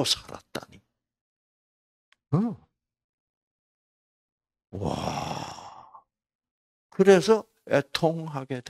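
An elderly man speaks into a microphone in short, animated bursts with pauses.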